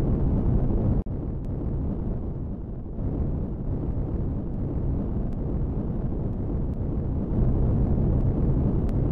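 A spaceship engine hums with a deep, steady rumble.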